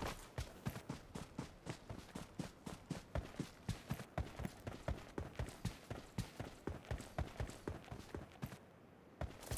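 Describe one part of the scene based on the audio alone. A game character's footsteps run quickly.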